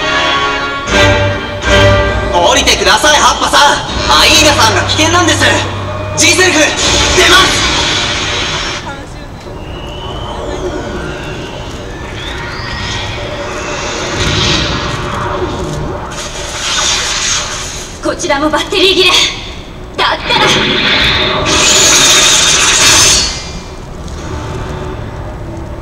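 Loud dramatic music plays over outdoor loudspeakers.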